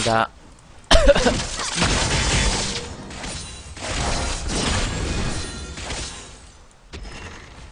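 Game sound effects clash and burst during a fight.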